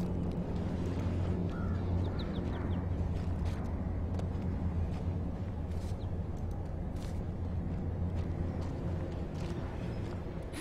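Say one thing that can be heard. Footsteps rustle through grass at a walking pace.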